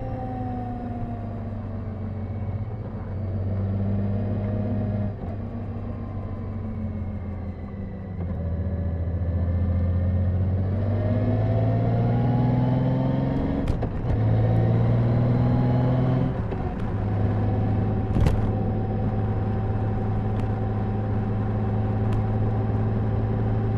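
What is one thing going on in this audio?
A motorcycle engine rumbles steadily, its pitch rising and falling as the bike speeds up and slows down.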